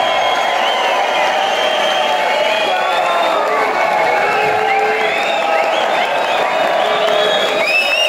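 A large crowd cheers, shouts and whistles loudly in a big echoing hall.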